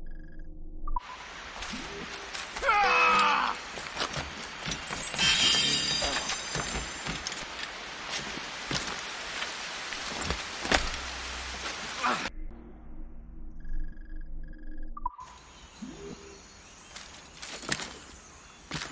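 Footsteps thud quickly through undergrowth.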